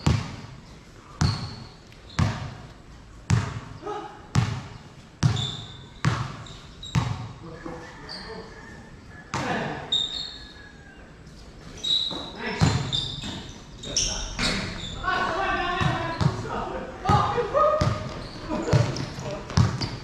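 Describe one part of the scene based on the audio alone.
A basketball bounces repeatedly on a hard court under an echoing roof.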